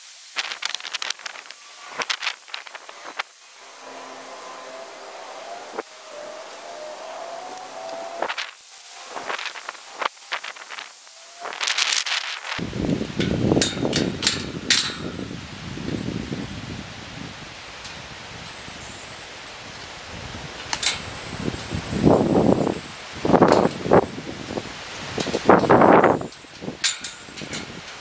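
A man talks calmly outdoors, close by.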